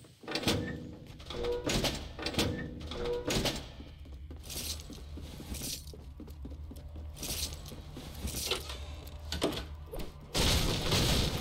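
Footsteps thump on wooden floors.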